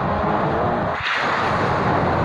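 A car crashes into a barrier with a loud bang.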